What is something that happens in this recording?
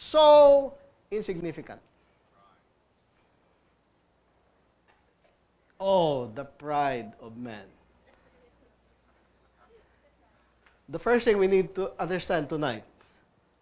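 A middle-aged man speaks with animation, pausing between phrases.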